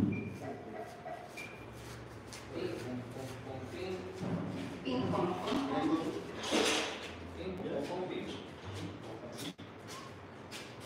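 Men talk casually nearby in a large echoing room.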